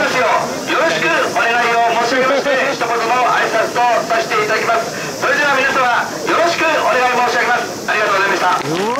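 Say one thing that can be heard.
An elderly man speaks loudly into a microphone through loudspeakers.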